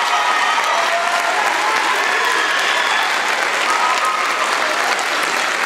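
A large choir of young voices sings together in an echoing hall.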